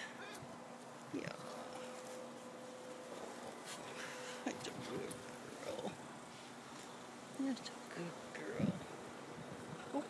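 A cat meows softly nearby.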